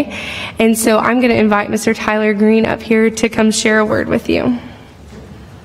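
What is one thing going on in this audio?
A woman speaks into a microphone, reading out.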